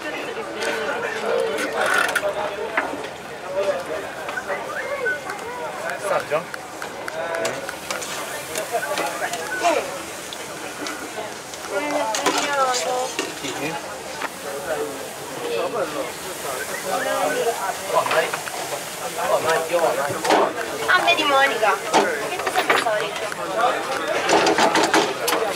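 Adults chat nearby with animation.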